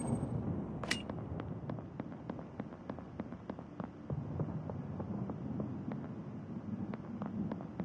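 A game character's footsteps tap quickly and evenly.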